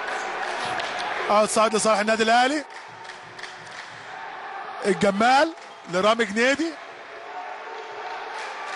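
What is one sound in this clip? A basketball bounces on a court.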